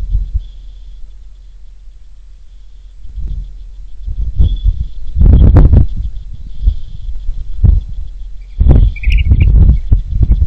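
Wind gusts outdoors and buffets the microphone in bursts.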